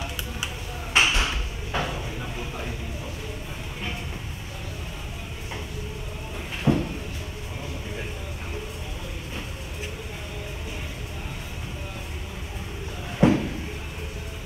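Heavy weights thud onto a floor with a dull bang.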